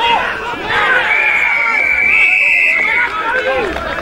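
An umpire's whistle blows with a long shrill tone.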